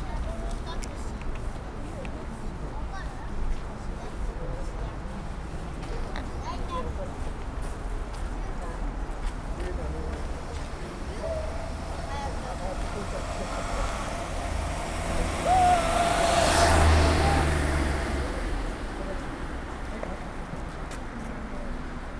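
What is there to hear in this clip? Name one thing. A crowd of people murmurs and chats quietly nearby.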